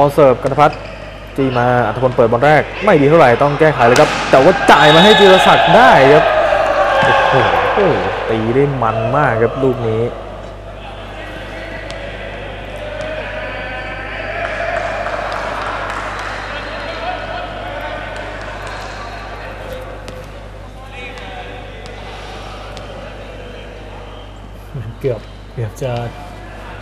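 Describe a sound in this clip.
A crowd murmurs and cheers in an echoing indoor hall.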